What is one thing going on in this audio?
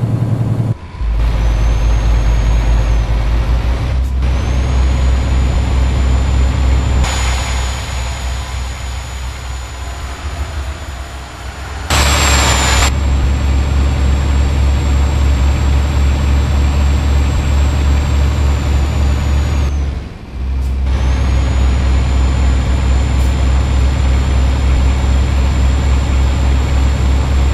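A truck engine drones steadily at low pitch.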